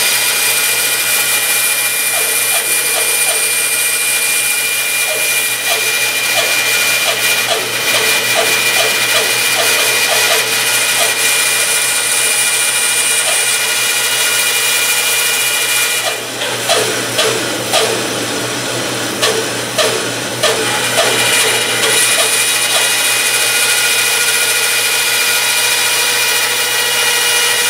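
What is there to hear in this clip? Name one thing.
A band saw whines steadily as it cuts through metal.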